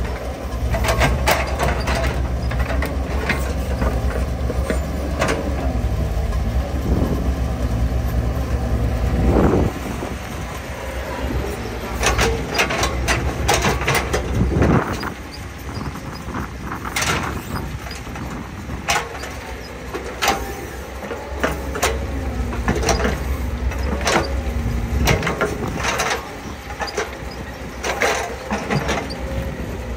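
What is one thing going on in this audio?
Metal clanks and knocks as an excavator bucket digs.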